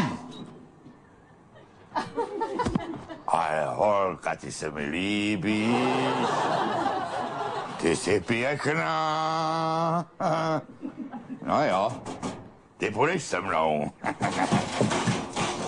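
An elderly man sings loudly and theatrically.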